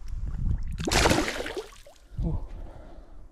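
Water splashes loudly as a hand slaps it.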